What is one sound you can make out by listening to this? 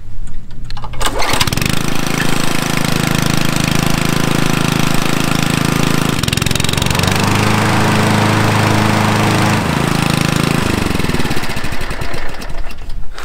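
A petrol lawn mower engine starts with a pull and runs with a loud steady drone, then winds down.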